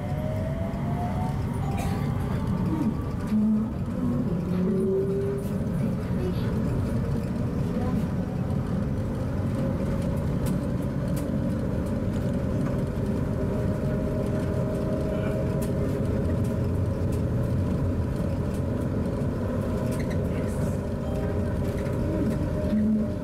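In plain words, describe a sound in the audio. A train rumbles steadily along an elevated track, heard from inside.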